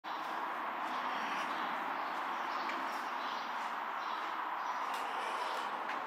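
Footsteps in slippers scuff down steps.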